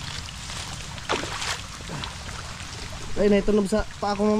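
Water splashes as someone wades through shallow mud.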